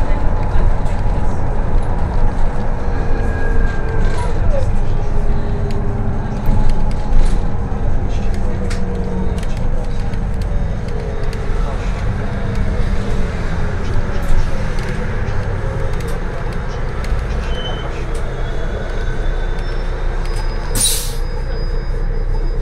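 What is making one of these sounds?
A bus rattles and creaks as it drives over the road.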